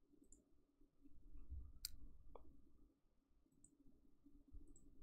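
A young woman speaks softly into a microphone.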